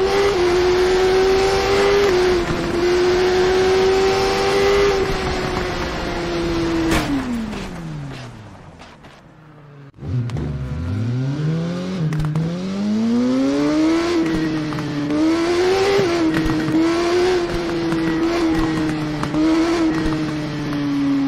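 A motorcycle engine roars at high speed, then winds down and revs up again through the gears.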